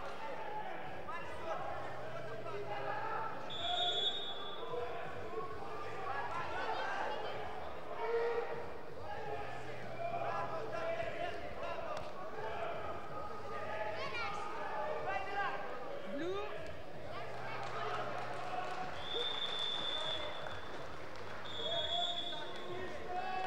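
Shoes squeak and scuff on a mat.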